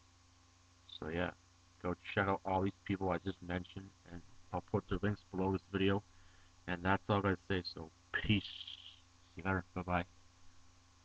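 A young man talks calmly and close to a microphone.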